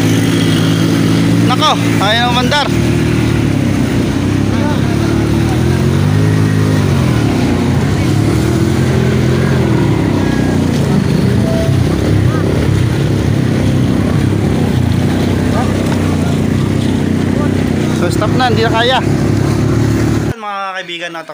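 Floodwater splashes and churns around wheels.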